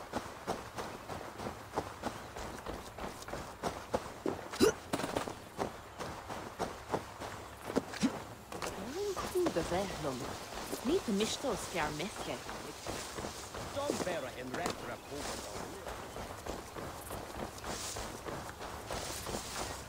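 Footsteps run quickly through grass and over gravel.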